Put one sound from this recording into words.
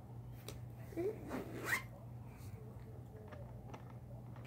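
A second young girl speaks and laughs close by.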